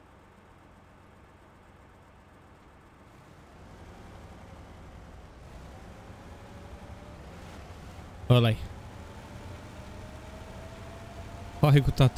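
A truck engine rumbles low and steadily, growing louder.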